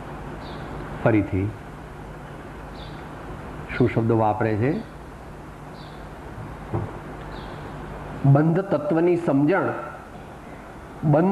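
An elderly man speaks slowly and calmly, in short phrases with long pauses.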